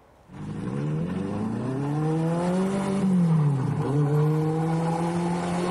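A car engine revs loudly, rising and falling in pitch.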